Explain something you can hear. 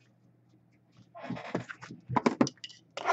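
A plastic wrapper crinkles.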